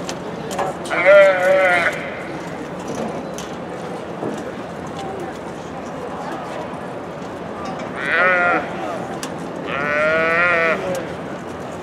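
A calf bawls loudly several times.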